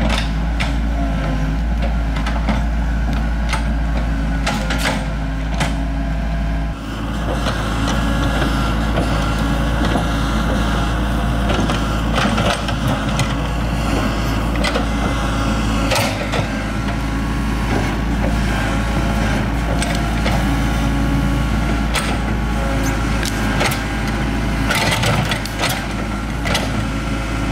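An excavator engine drones steadily nearby.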